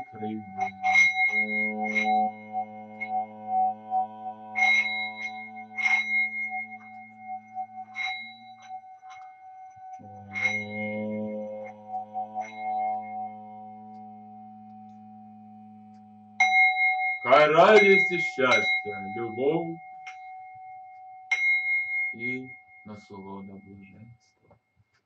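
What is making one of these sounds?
A singing bowl rings with a steady, humming tone, swelling and slowly fading.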